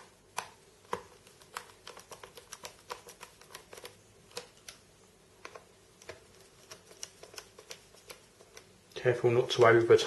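A small screwdriver clicks and scrapes as it turns tiny screws.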